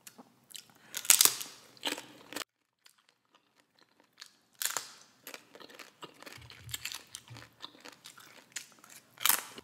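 A woman crunches crisp tortilla chips close to a microphone.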